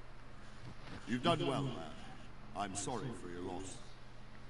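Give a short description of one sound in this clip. An older man speaks calmly and warmly, close by.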